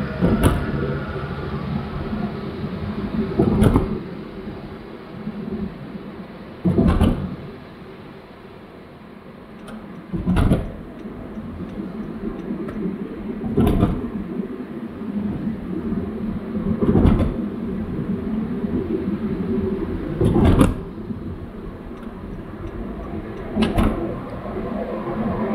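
A car engine hums steadily with tyres rolling on the road, heard from inside the car.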